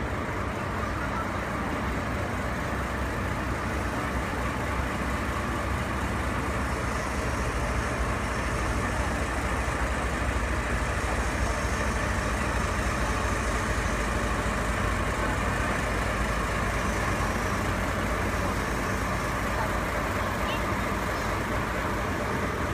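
A diesel locomotive engine idles with a steady low rumble.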